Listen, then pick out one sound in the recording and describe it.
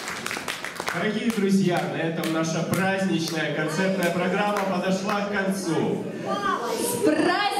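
A man speaks loudly and cheerfully through a microphone.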